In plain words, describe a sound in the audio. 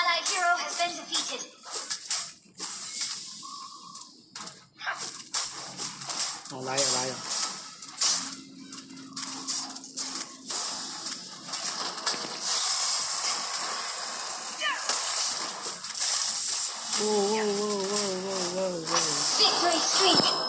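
Game sound effects of clashing blows and magic blasts ring out in quick bursts.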